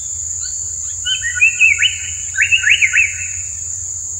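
A small bird gives a short burst of harsh, buzzing calls close by.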